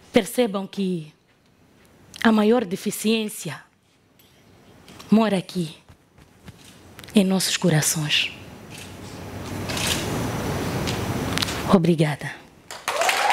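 A young woman speaks with feeling into a headset microphone.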